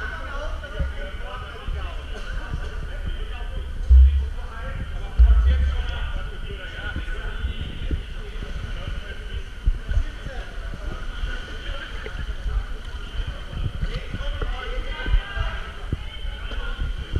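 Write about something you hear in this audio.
Water splashes and laps close by in a large echoing pool hall.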